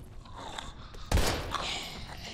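A gunshot fires sharply.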